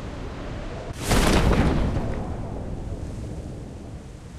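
A parachute snaps open with a loud whoosh.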